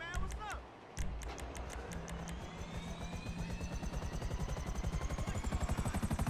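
A helicopter's engine whines and its rotor thumps faster and faster.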